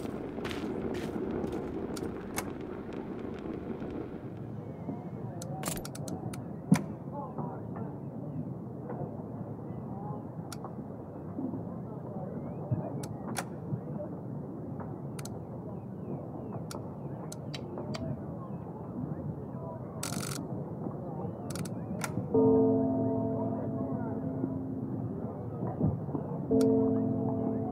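Short soft clicks sound now and then as menu buttons are pressed.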